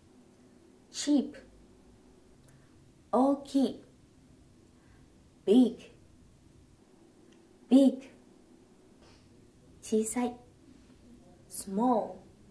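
A young woman speaks single words clearly and slowly, close to a microphone, with pauses between them.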